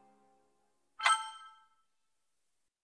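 A bright menu chime rings once.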